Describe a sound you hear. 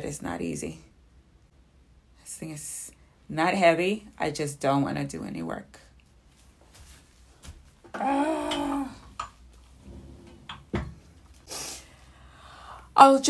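A young woman speaks close by, in short bursts, in a lively voice.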